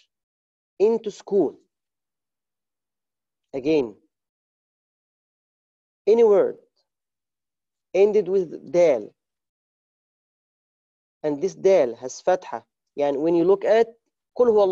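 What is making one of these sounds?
A man speaks calmly in short phrases close to a microphone, with pauses between them.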